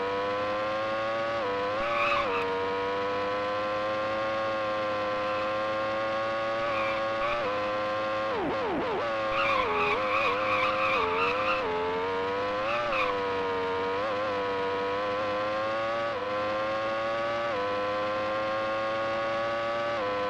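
A racing car engine whines steadily at high revs, dropping in pitch on each gear change.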